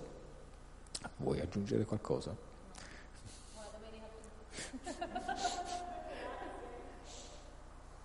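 A woman laughs and talks through a microphone.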